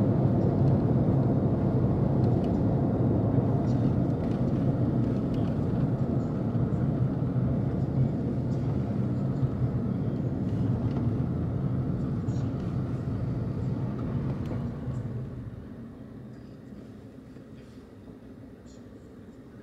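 A car engine hums low and steady from inside the car, then quietens as the car slows to a stop.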